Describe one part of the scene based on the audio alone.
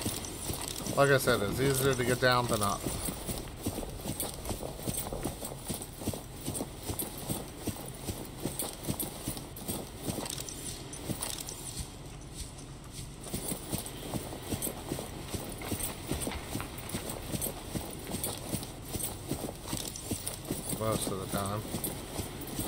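A man speaks briefly into a close microphone.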